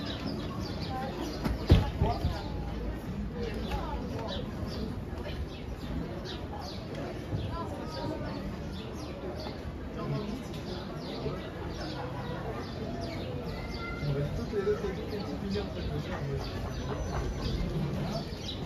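A crowd of people talks and murmurs outdoors.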